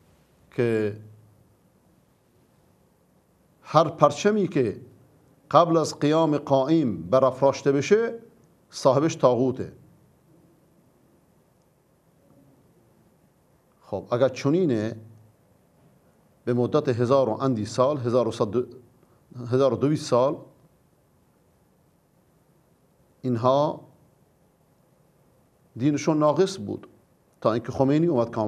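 A middle-aged man speaks calmly and deliberately into a microphone, with long pauses.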